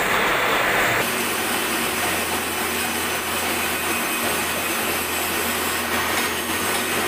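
A cutting tool hisses and scrapes against spinning steel.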